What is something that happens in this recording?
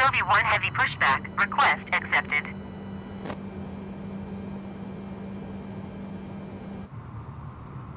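An airliner's engine hums steadily nearby.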